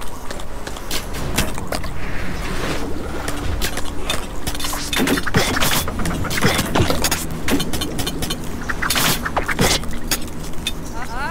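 Weapons clash and clatter in a small battle.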